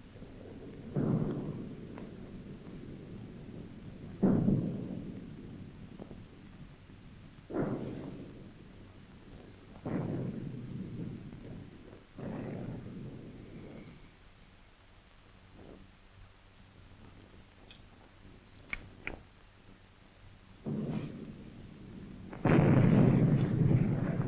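A man speaks weakly and breathlessly, close by.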